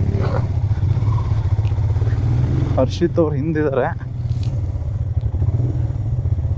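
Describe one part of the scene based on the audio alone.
A motorcycle engine thrums at low speed.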